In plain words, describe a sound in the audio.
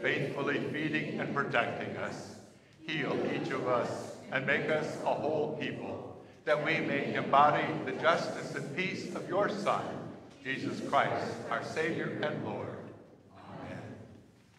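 An elderly man speaks with feeling through a microphone in a large echoing room.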